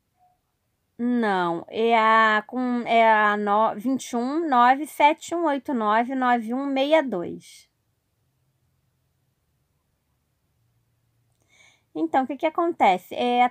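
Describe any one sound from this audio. A woman talks into a phone close by, with animation.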